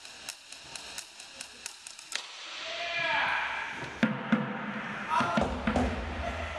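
Drumsticks tap out a quick rhythm on plastic buckets.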